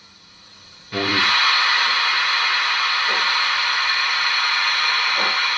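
A model steam locomotive lets off a loud, steady hiss of steam.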